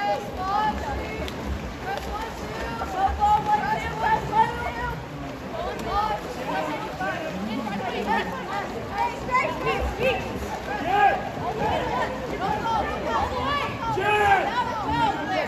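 A crowd of spectators shouts and calls out at an outdoor pool.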